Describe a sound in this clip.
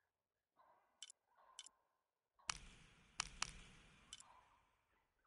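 Short menu clicks tick a few times.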